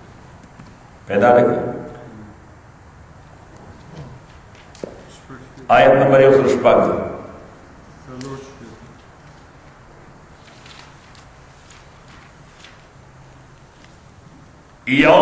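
A middle-aged man speaks calmly into a close microphone.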